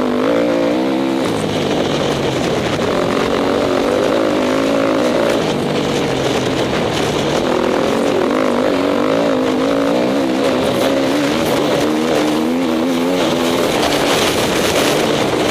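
A dirt bike engine revs up and down loudly and close.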